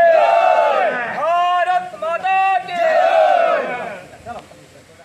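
A group of young men chants slogans loudly in unison.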